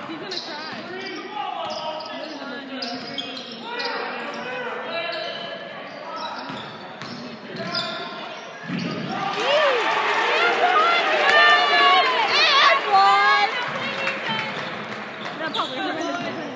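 A crowd of spectators murmurs and chatters in a large echoing gym.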